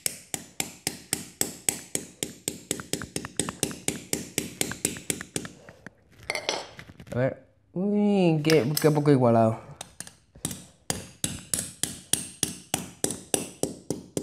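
A hammer taps rapidly and repeatedly, with sharp clicks.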